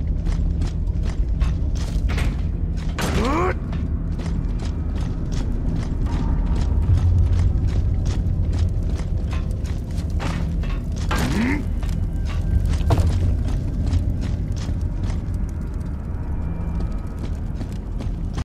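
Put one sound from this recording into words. Heavy armoured footsteps clank steadily on hard ground.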